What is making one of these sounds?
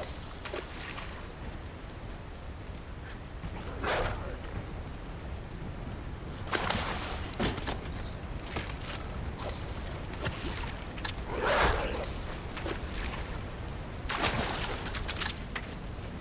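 Water splashes softly.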